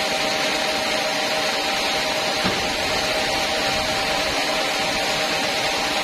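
A band sawmill runs with a steady whine.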